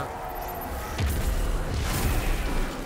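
An energy blast bursts loudly.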